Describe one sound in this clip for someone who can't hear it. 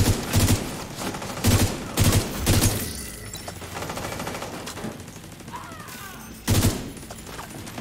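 A rifle fires in quick, loud bursts.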